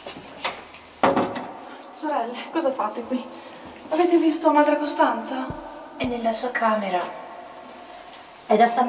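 A woman speaks with animation, heard through a loudspeaker in a large room.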